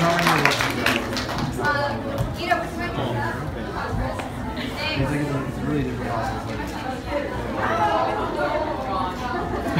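A crowd of young people chatter and laugh in a large room.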